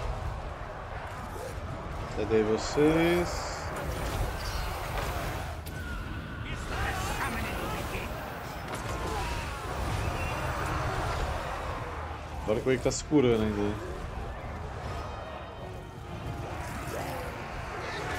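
Battle noise of clashing soldiers and magic blasts rumbles on.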